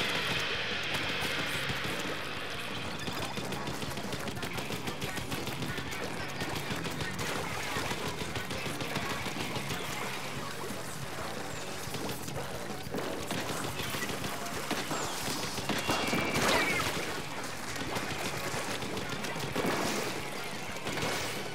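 Ink guns fire in rapid bursts of wet splattering.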